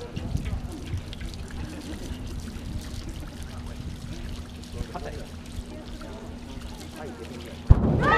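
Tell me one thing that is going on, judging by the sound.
Water pours from a hose into a metal drum.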